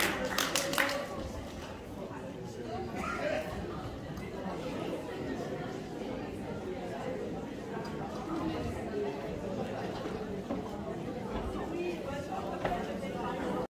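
A crowd of men and women chatters quietly in a large hall.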